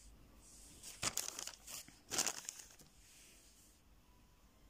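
A paper receipt rustles in a hand.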